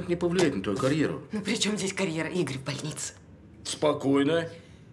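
A young woman speaks wearily and close by.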